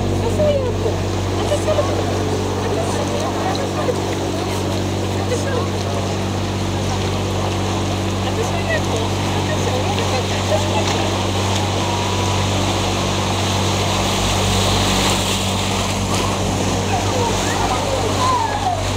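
People chatter faintly nearby.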